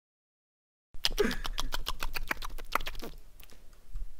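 Someone chews and crunches a candy bar.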